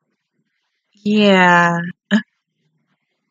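A young woman laughs out loud close by.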